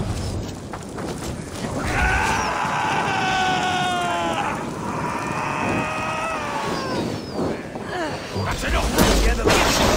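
Flames crackle close by.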